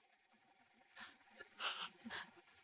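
A woman sniffles and blows her nose into a tissue.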